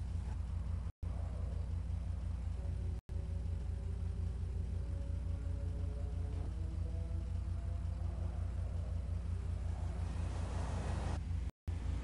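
A car engine idles with a low, steady, throbbing rumble.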